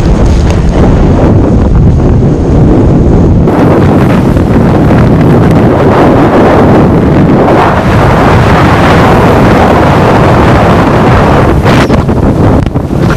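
Strong wind roars loudly across the microphone.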